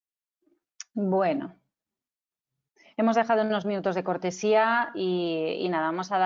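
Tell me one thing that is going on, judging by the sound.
A woman speaks calmly through an online call, close to the microphone.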